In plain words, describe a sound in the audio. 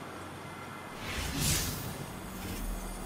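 A soft electronic whoosh sounds as a game menu opens.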